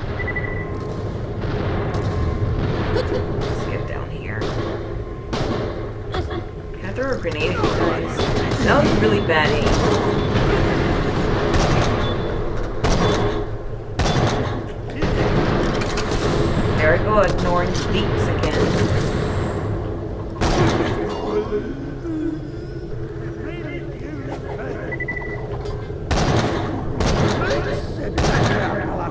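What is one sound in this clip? Gunshots fire repeatedly, each with a sharp crack.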